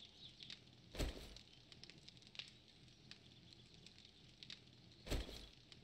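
A tool strikes with dull, heavy thuds every few seconds.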